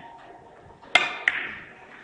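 A cue strikes a billiard ball sharply.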